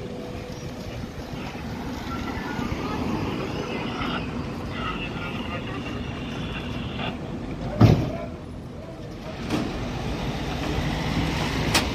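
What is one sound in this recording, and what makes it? A stretcher rattles as it is loaded into an ambulance.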